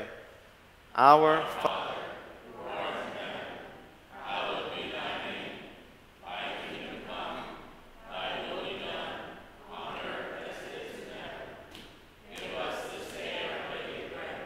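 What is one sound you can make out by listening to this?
A man speaks calmly and slowly, echoing in a large hall.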